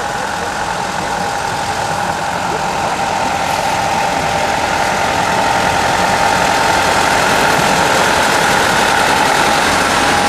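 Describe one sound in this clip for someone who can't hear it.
Train wheels clatter rhythmically on the rails.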